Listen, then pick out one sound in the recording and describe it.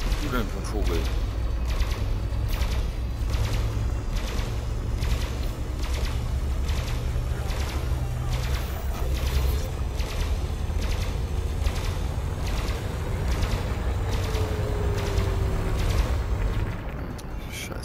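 Laser cannons fire in rapid, steady bursts.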